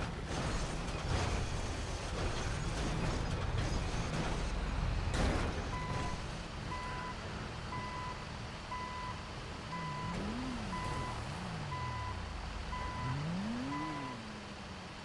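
A diesel bulldozer engine rumbles as the bulldozer drives on its tracks.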